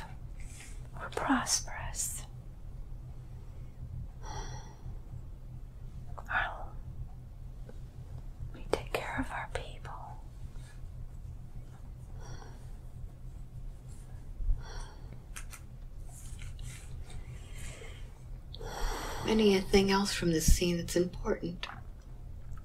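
An elderly woman groans and moans softly close by.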